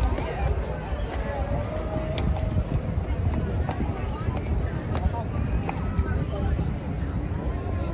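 Footsteps walk on paving outdoors.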